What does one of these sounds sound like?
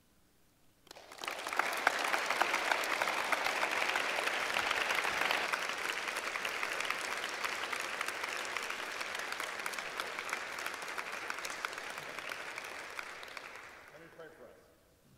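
An audience applauds loudly and then fades.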